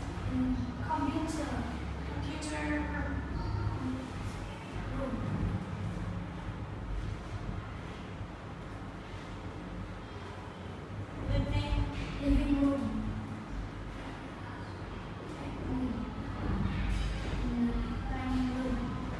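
A young woman speaks clearly and slowly nearby, as if teaching.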